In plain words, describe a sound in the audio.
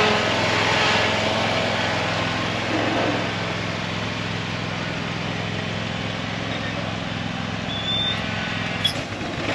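A riding lawn mower engine hums steadily and slowly fades into the distance.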